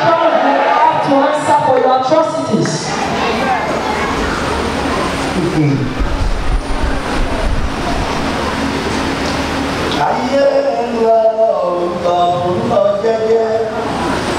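A man speaks with animation into a microphone, amplified through loudspeakers in an echoing hall.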